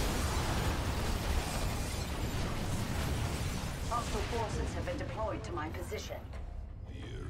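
Explosions and laser blasts rumble from a game battle.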